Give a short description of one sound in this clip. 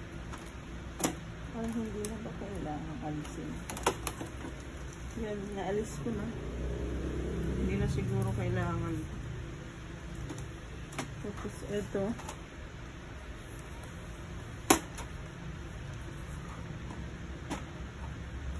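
Plastic ink cartridges click and snap into a printer.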